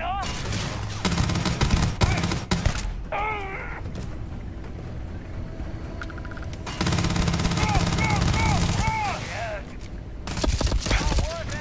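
Rapid automatic gunfire rattles in bursts.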